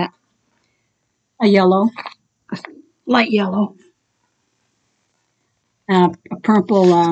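An older woman talks calmly and close by, in short phrases with pauses.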